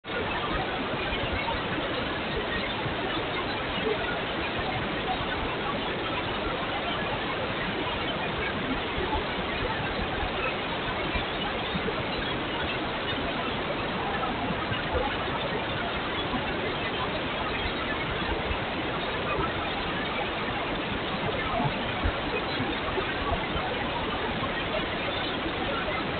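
Wind rushes loudly past a motorcycle riding at speed.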